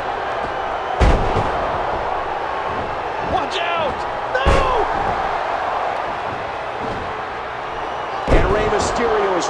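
Bodies slam onto a wrestling ring mat with heavy thuds.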